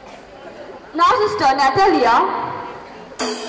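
A woman speaks through a loudspeaker.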